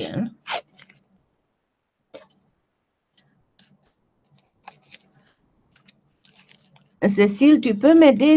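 Masking tape is pulled off a roll.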